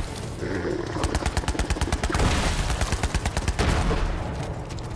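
A gun fires rapidly in quick bursts.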